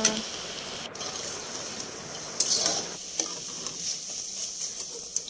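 Hot oil sizzles and crackles steadily in a pan.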